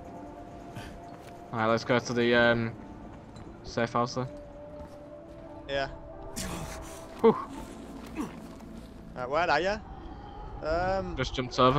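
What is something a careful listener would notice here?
Footsteps thud and scrape on rooftops as a runner jumps and lands.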